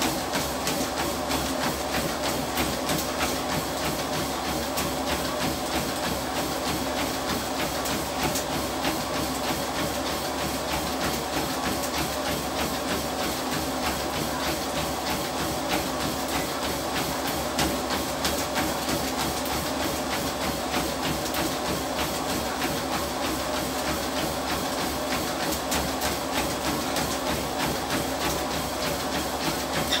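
Footsteps thud rapidly on a running treadmill.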